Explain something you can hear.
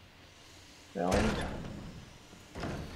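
A metal locker door swings open with a clank.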